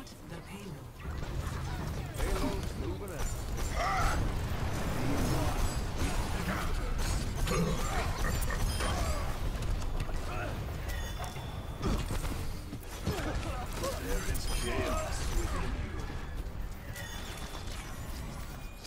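Game weapons fire in rapid bursts with blasts and impacts.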